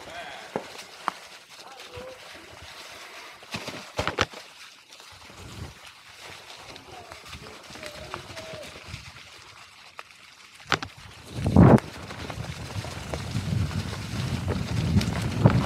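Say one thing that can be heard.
Bike tyres roll and crunch over dry fallen leaves.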